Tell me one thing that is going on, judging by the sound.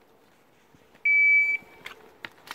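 A shot timer beeps once.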